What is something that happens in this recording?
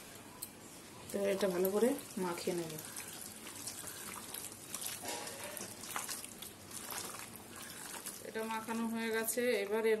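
Hands squish and toss wet food in a metal bowl.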